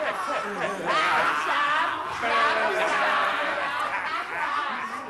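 Several men laugh and shout loudly together.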